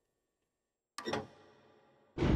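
A lever clanks as it is pulled.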